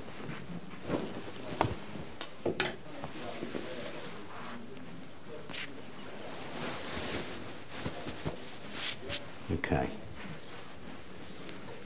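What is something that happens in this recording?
Fabric rustles as a jacket is handled and put on.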